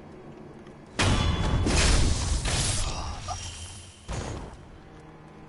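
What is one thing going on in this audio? Swords clash and slash in a fight.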